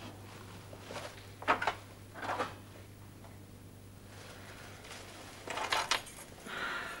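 A metal gate rattles and clanks.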